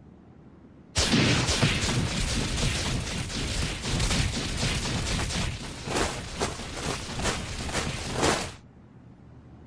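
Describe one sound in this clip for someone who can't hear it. Earth and rocks rumble and crumble loudly as the ground breaks open.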